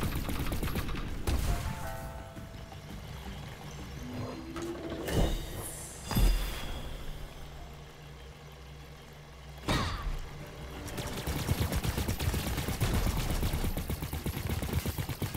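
Rapid blaster shots fire in quick bursts.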